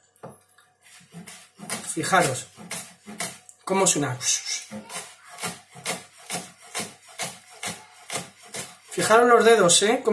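A knife chops rapidly on a cutting board.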